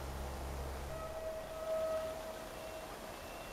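A train horn sounds a short steady blast.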